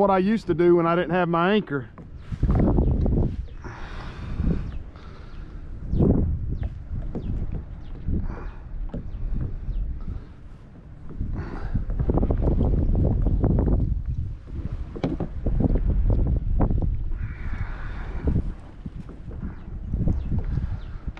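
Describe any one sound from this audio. Water laps against the side of a kayak.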